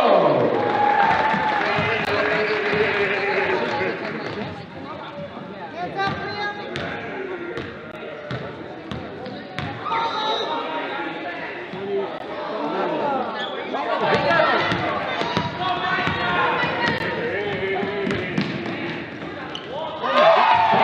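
A crowd of spectators murmurs and cheers in an echoing gym.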